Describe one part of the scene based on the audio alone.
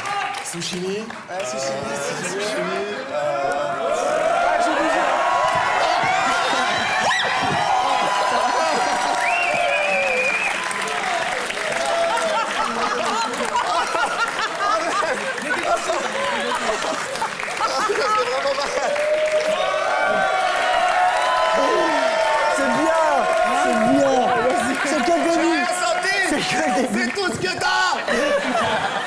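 A studio audience laughs and cheers loudly.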